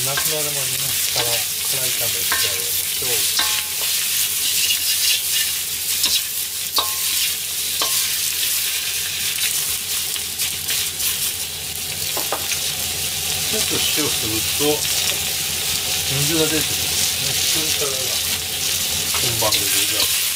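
Onions sizzle loudly in a hot wok.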